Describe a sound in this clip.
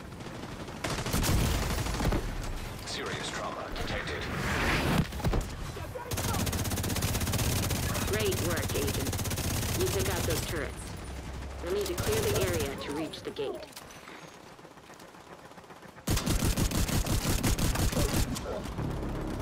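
Rapid gunfire bursts ring out close by.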